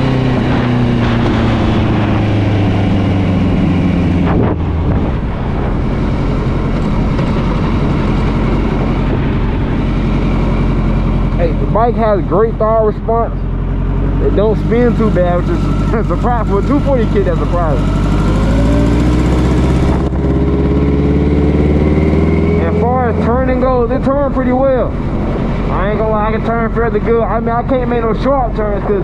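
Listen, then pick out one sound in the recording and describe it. A motorcycle engine hums and rises and falls in pitch as the bike speeds up and slows down.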